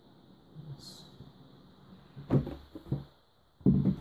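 A box lid slides off with a soft scrape.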